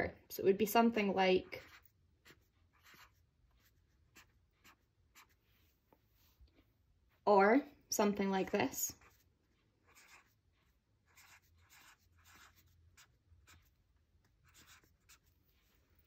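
A felt-tip marker squeaks and taps softly on paper.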